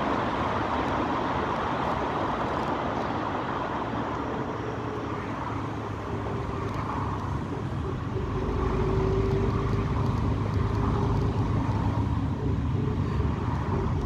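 A car's engine hums steadily, heard from inside.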